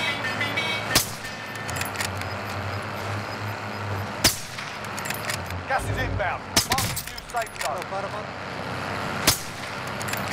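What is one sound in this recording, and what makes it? A sniper rifle fires sharp single shots.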